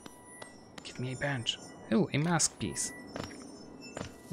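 Light footsteps tap quickly on stone.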